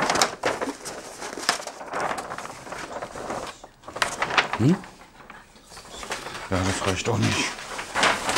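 Stiff cardboard rustles and flexes as it is handled.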